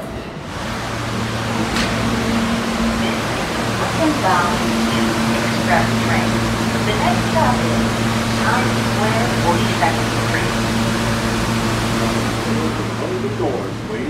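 A stopped subway train hums.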